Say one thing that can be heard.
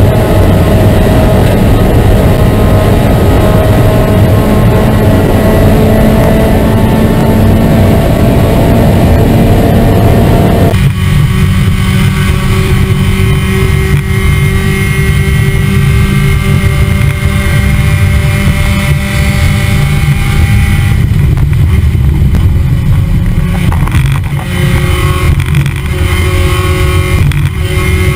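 A racing car engine roars loudly up close, revving and shifting gears.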